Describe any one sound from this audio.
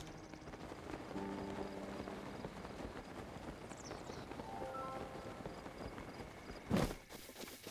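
Wind rushes steadily past a glider in flight.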